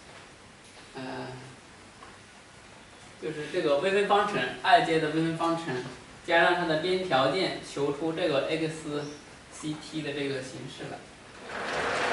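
A young man speaks calmly, as if lecturing.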